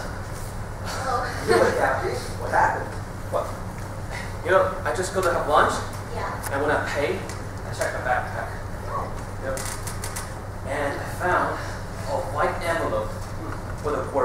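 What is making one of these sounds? A young man speaks with animation in a large hall.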